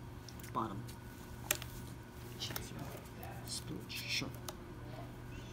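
Playing cards slide and tap on a soft mat.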